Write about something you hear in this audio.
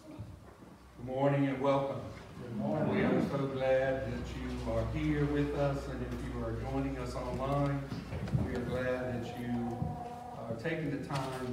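A man speaks calmly at a distance in an echoing hall.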